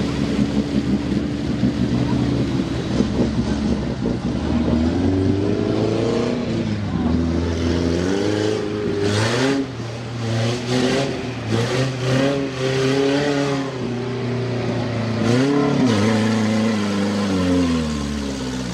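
Off-road truck engines roar and rev loudly through deep mud.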